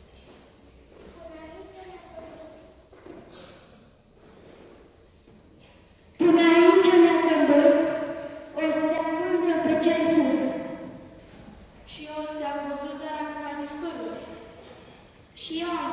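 Voices sing a slow chant that echoes through a large hall.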